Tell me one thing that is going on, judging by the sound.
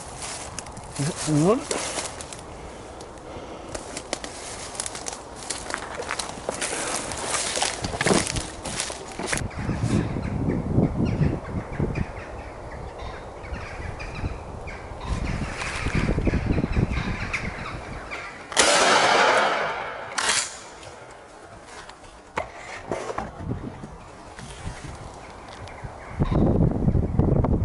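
Footsteps crunch through dry leaves and twigs close by.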